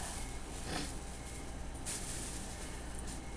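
A plastic bag rustles and crinkles close by.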